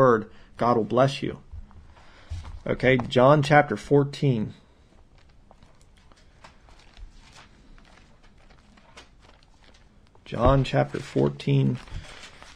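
A man speaks calmly and clearly, close to a microphone, pausing between phrases.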